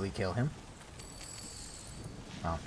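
A magical shimmer chimes and crackles.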